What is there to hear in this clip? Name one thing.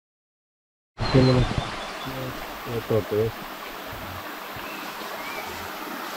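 A stream trickles and flows outdoors.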